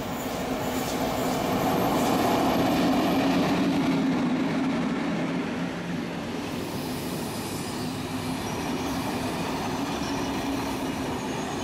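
Train wheels rumble and clatter on the rails as carriages pass close by.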